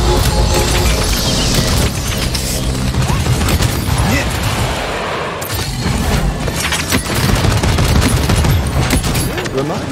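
Energy weapons fire in rapid bursts.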